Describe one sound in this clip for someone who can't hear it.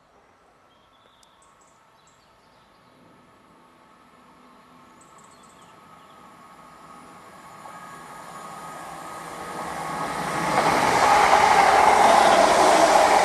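A train approaches and rushes past close by, growing steadily louder.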